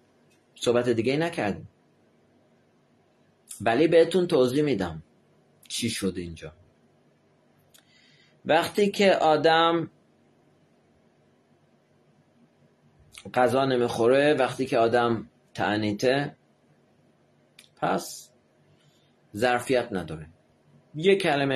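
A middle-aged man speaks calmly and close up, in short phrases with pauses.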